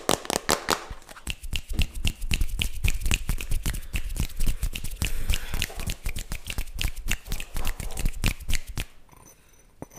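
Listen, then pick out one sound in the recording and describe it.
Hands rub and flutter close to a microphone.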